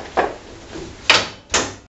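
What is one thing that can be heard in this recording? A car hood slams shut.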